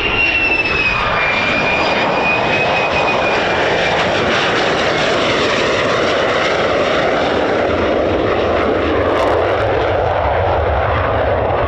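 A jet engine's roar deepens into a heavy rumble.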